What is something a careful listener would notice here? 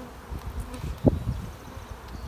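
A wooden frame knocks against a hive box.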